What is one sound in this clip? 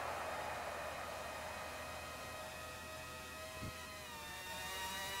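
A racing car engine whines at high revs, its pitch shifting as it changes gear.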